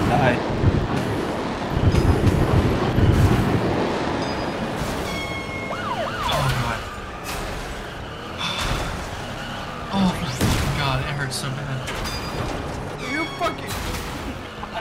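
Toy car engines whine and buzz as the cars race.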